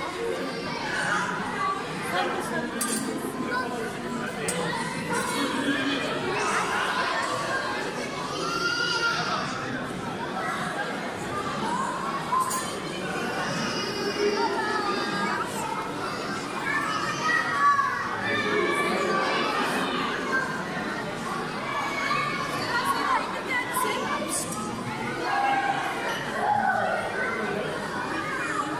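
Young children shout and squeal excitedly close by.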